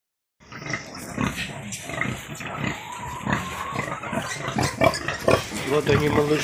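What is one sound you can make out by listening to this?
Piglets squeal and grunt close by.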